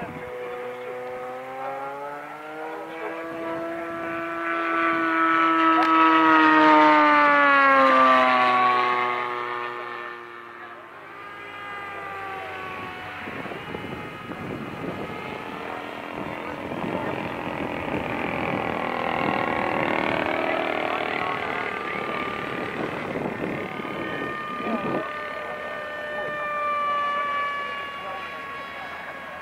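A model plane's engine whines overhead, rising and falling in pitch as it passes.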